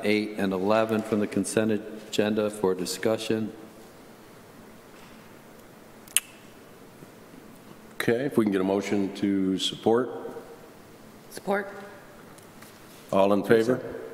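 A man speaks calmly into a microphone, pausing now and then.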